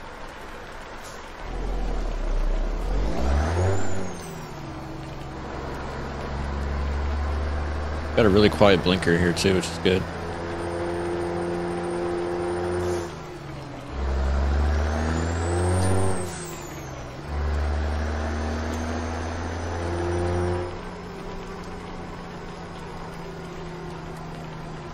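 A truck engine hums, rising and falling in pitch as the gears shift.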